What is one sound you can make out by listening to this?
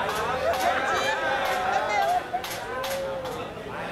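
A crowd murmurs and calls out nearby.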